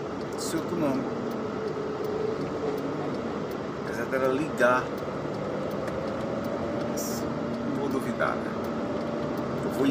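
Traffic hums along a busy road.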